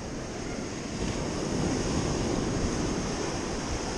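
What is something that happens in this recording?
Small waves wash onto the sand.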